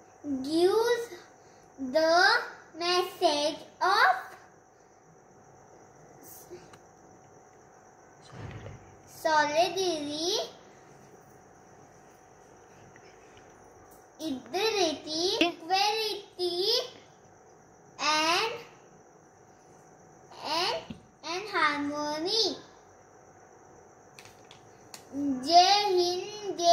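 A young girl speaks up clearly and with expression, close by, in short bursts with pauses.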